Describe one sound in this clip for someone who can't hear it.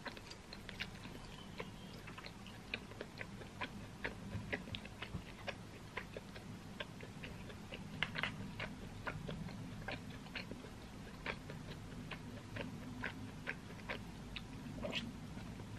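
A young woman chews food and smacks her lips close to a microphone.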